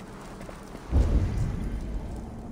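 A body plunges into water with a heavy rush.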